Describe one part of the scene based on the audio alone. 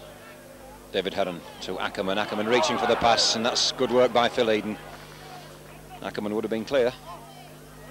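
A crowd of spectators cheers and shouts loudly.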